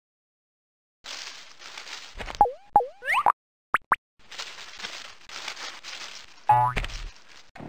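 Dry hay rustles and crackles as a small animal burrows through it.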